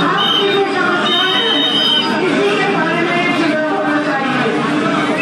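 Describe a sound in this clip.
A woman speaks forcefully through a loudspeaker microphone, echoing outdoors.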